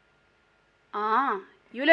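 A young woman speaks up sharply, close by.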